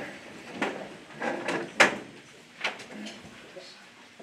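Objects clatter and knock on a table.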